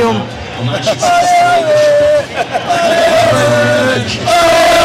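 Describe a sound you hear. Young men sing a loud, drawn-out chant together close by.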